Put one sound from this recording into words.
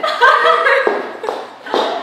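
A young woman laughs out loud.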